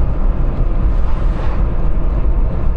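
A van rushes past close by.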